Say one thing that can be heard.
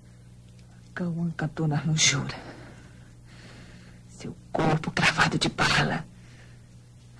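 A woman speaks close by in a strained, anguished voice.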